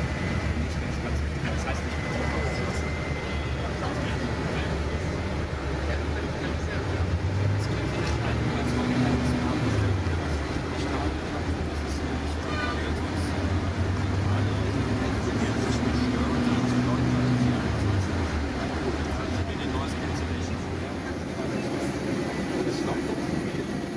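A bus engine drones steadily as the bus drives along a road.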